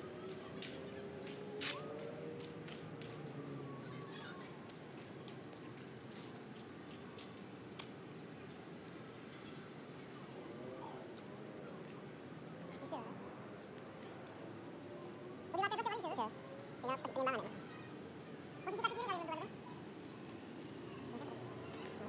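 Small wheels of an electric scooter roll over wet pavement.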